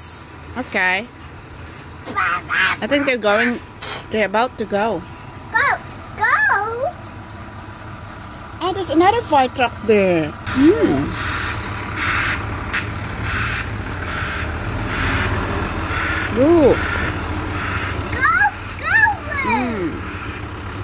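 A young child shouts and squeals excitedly close by.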